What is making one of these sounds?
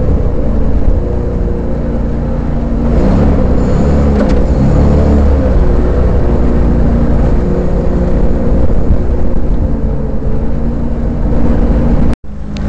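A vehicle engine drones steadily.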